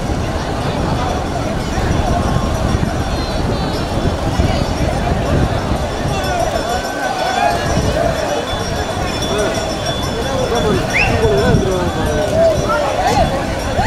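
A large crowd shouts and chatters outdoors.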